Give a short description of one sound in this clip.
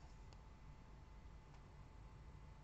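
Paper rustles softly between fingers.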